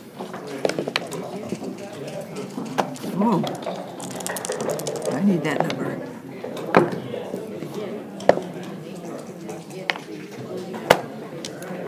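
Backgammon checkers click and clack as they are moved on a wooden board.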